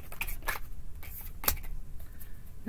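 Cards shuffle and tap together.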